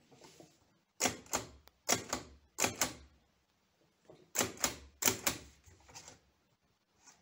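Typewriter keys clack sharply in quick bursts.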